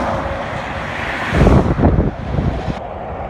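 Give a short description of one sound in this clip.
A car whooshes past close by.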